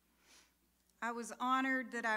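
An elderly woman speaks into a microphone over loudspeakers in a large echoing hall.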